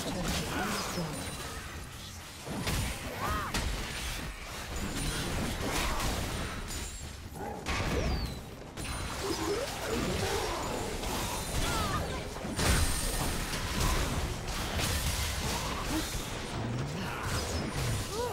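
Fantasy spells whoosh and crackle, with clashing hits.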